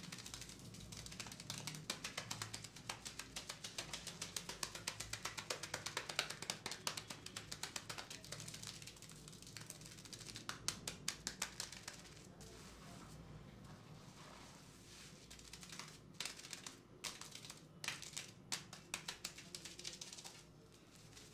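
Hands squish and scrub through thick lather on a head, close up.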